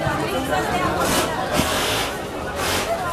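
A crowd cheers in short bursts.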